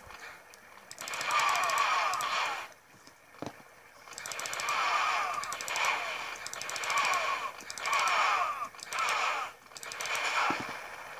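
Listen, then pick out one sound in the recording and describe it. Video game gunfire rattles in rapid bursts through small laptop speakers.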